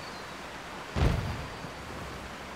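A heavy rock thuds onto the ground.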